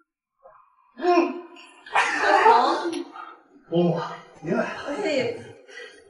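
A woman speaks warmly at close range.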